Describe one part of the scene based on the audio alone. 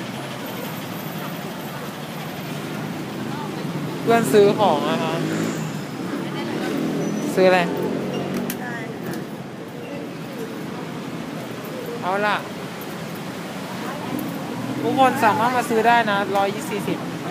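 Street crowd noise murmurs outdoors.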